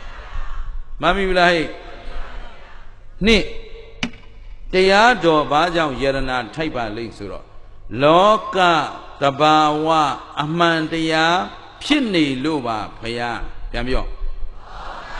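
A man speaks calmly and with animation into a microphone.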